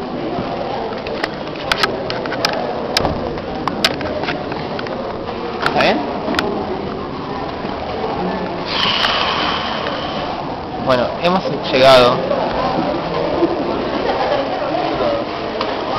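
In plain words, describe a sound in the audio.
A crowd of young people chatters and shouts nearby in a large room.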